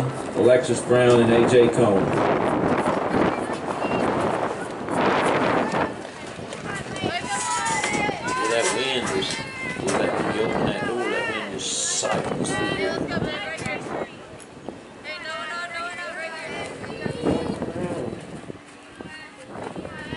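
Young women players call out and chatter on the field.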